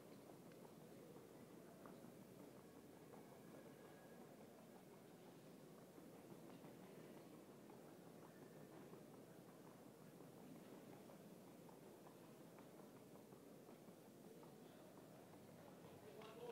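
A horse's hooves thud rapidly on soft arena footing.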